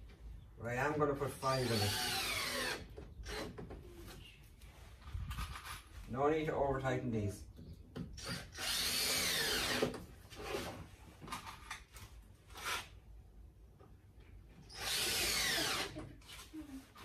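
A power drill whirs in short bursts, speeding up and slowing down.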